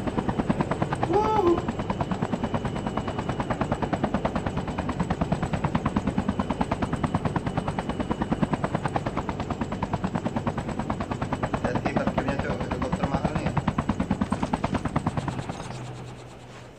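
A helicopter's rotor thumps rapidly and steadily, then fades away.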